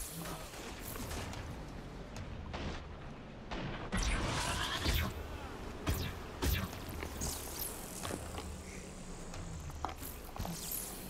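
Electric zaps and whooshes sweep past as a figure dashes along.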